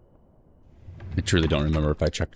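A man speaks close to a microphone, with animation.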